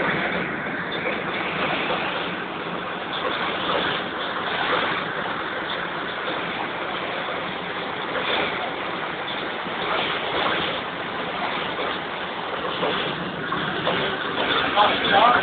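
A stream rushes and splashes over rocks close by.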